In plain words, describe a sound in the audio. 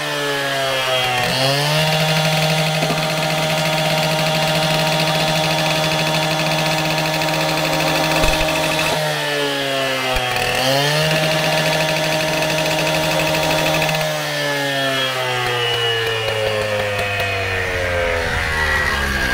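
A gas-powered cut-off saw engine roars and revs up and down.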